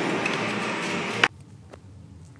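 Arcade machines buzz and clatter loudly nearby.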